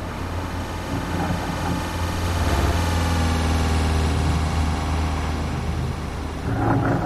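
A truck engine revs up and then settles back down.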